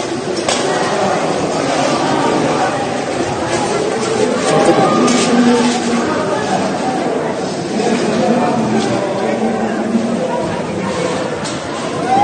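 A crowd of men and women shout and clamour outdoors.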